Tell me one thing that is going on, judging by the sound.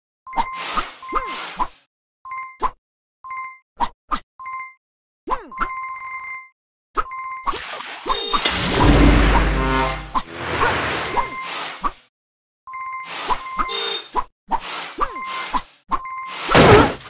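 Bright game chimes ring in quick bursts.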